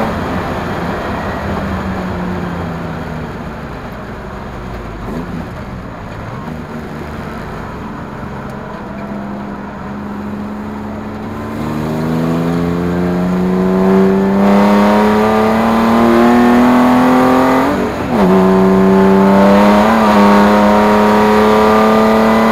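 Road noise rumbles steadily from the car's tyres.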